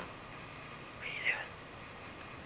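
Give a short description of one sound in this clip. A small kitten mews softly close by.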